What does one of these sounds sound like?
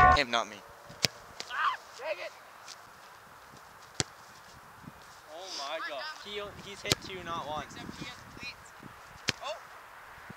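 A soccer ball is kicked with dull thuds.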